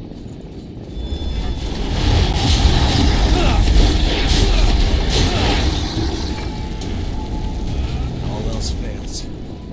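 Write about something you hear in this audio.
Blades clash and slash in a fierce fight, with heavy thuds and booms.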